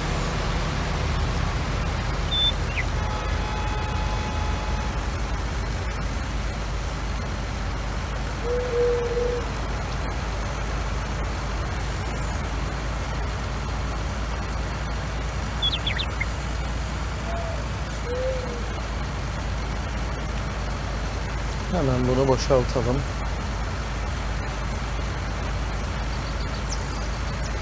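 A heavy truck engine hums steadily as it drives along.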